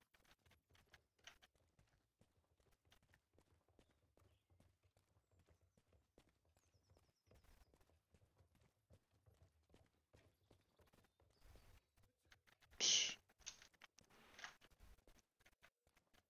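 A wooden cart rattles along a dirt track.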